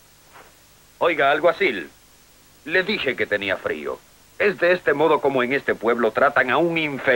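A man speaks firmly and tensely, close by.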